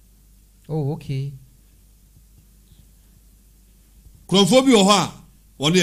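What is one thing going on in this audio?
A man speaks with animation into a close microphone, in short bursts with pauses.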